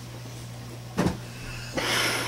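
A door thuds shut.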